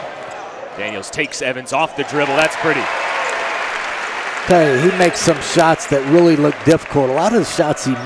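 A crowd cheers loudly after a basket.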